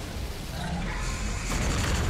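Magic blasts and impacts crackle as fighters clash in a video game.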